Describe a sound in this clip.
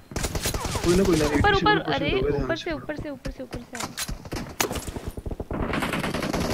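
Rapid gunfire bursts crack out in a video game.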